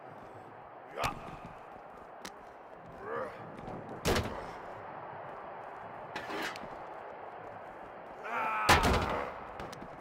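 Heavy blows thud and slam against a car.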